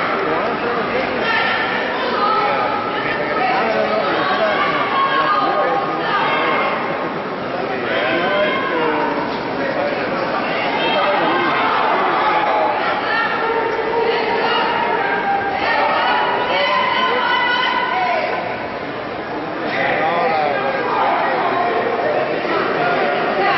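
A crowd of spectators shouts and cheers in a large hall.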